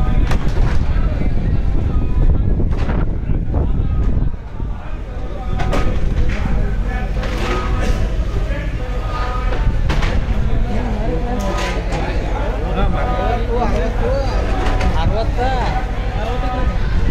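A crowd of men chatter nearby, outdoors.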